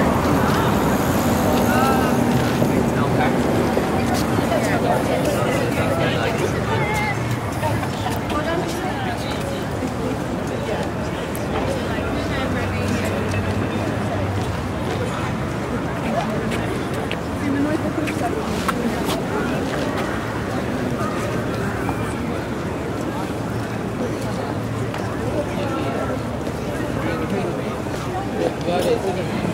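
Traffic hums in the distance.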